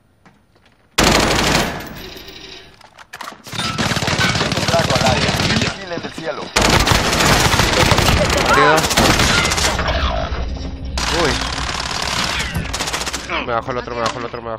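Rapid gunfire bursts loudly and close.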